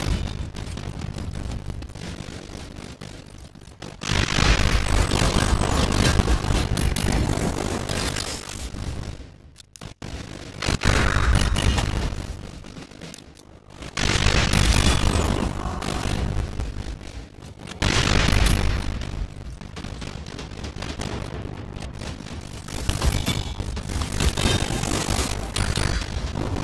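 Game music and battle effects play loudly, with sword clashes and magic blasts in bursts.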